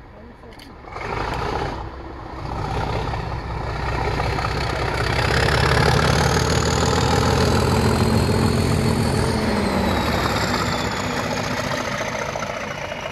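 A diesel locomotive approaches and roars past close by.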